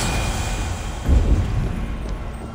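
A burst of energy whooshes and booms.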